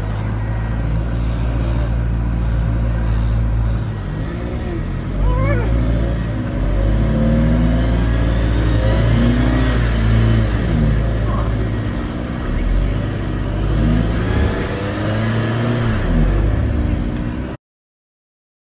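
A van engine rumbles and revs.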